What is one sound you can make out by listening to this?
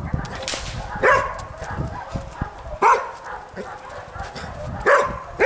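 A dog barks loudly outdoors, in sharp repeated bursts.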